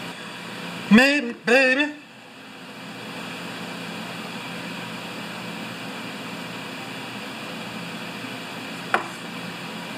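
Plastic parts are set down on a metal table with a dull clunk.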